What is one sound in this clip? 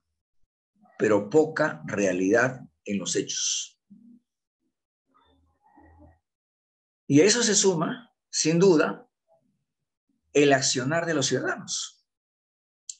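A middle-aged man speaks steadily in bursts over an online call.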